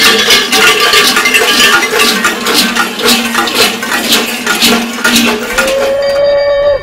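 Large cowbells clang loudly in a fast, rhythmic beat.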